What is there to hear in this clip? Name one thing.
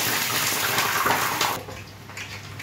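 Water bubbles and boils in pots on a stove.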